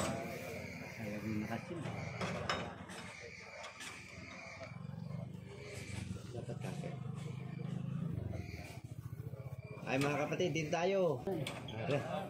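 A metal bar clanks against a container door latch.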